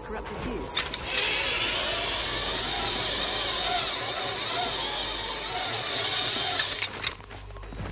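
A pulley whirs along a cable.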